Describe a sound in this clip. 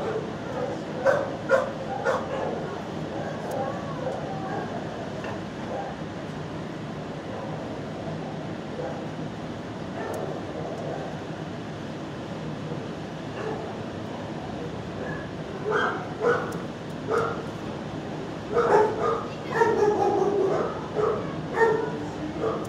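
A dog sniffs loudly at the floor.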